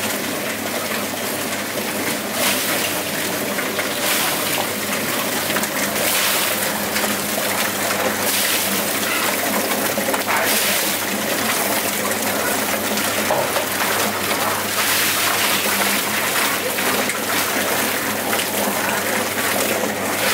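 A plucking machine drum spins with a loud steady whirr and rattle.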